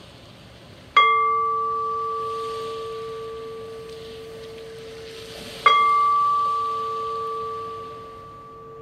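A small metal singing bowl is struck with a mallet and rings out with a long, fading tone.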